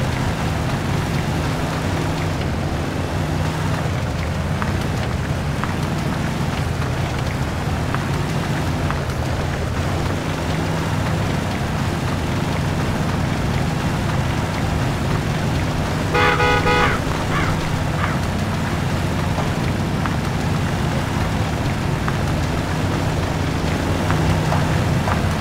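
Tyres squelch and splash through mud.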